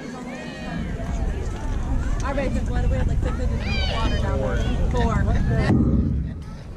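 Young girls shout and cheer from across an open field.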